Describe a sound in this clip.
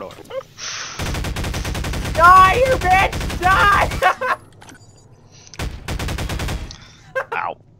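A rifle fires rapid bursts of shots.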